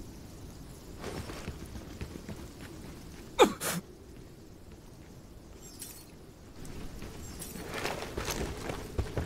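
Footsteps crunch over grass and rock.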